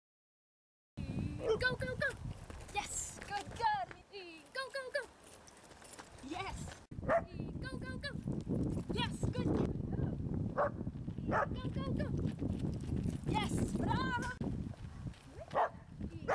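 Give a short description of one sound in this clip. A young woman calls out short commands to a dog outdoors.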